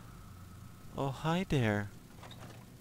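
A door slides open.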